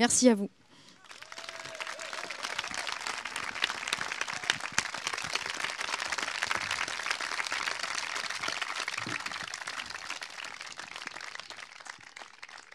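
A small audience applauds.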